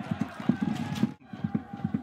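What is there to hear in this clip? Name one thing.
A crowd of supporters chants and cheers.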